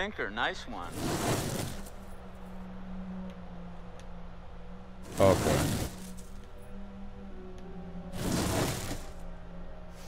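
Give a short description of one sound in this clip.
A heavy metal cabinet scrapes loudly across the ground.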